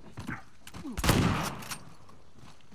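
Gunshots ring out in a short burst.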